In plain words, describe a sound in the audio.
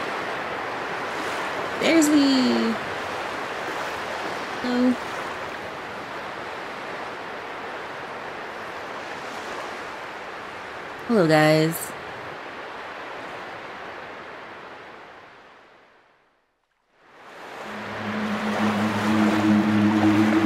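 Waves wash and splash steadily across open water in the wind.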